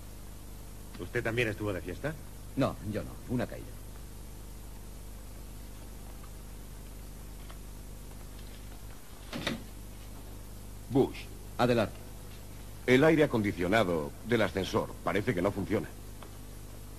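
A middle-aged man speaks with animation close by.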